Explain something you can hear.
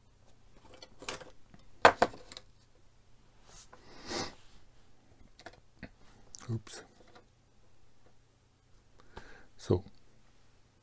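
A small plastic part clicks and taps on a hard surface.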